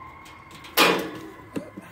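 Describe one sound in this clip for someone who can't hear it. A metal roof rack clanks.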